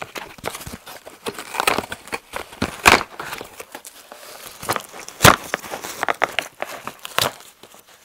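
A cardboard envelope rustles and crinkles as it is handled.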